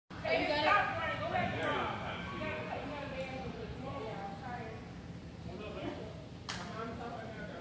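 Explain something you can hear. A group of young people talks and calls out in a large echoing hall.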